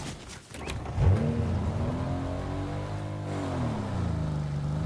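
A vehicle engine revs up and down.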